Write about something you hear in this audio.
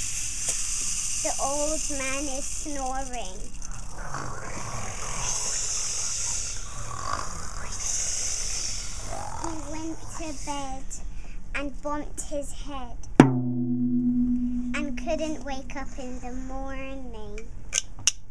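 A young girl speaks close by, cheerfully.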